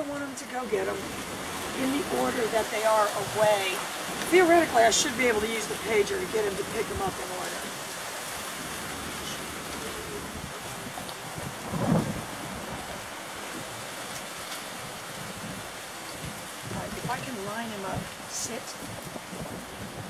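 A young woman gives commands to a dog.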